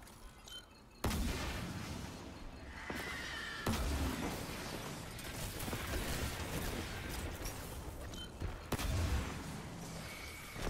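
A heavy rifle fires sharp single shots.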